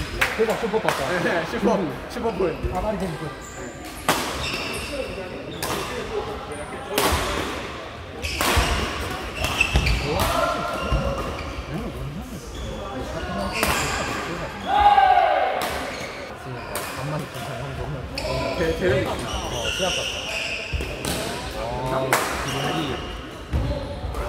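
Men call out and talk during play in an echoing hall.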